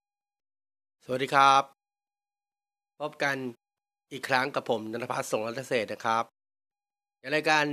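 A man speaks close to a phone microphone in short bursts, with animation.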